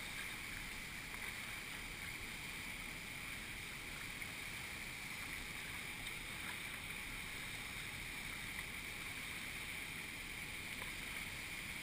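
A paddle splashes into the water.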